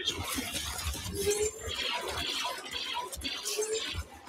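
Blaster guns fire in rapid bursts.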